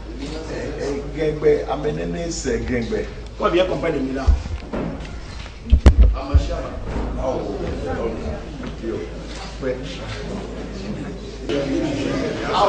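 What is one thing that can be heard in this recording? A crowd of men murmurs and chatters in a large echoing hall.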